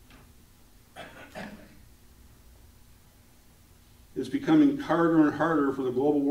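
A middle-aged man speaks calmly in a room with a slight echo.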